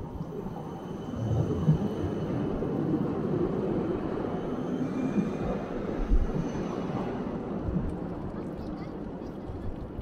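An electric tram passes close by on its rails.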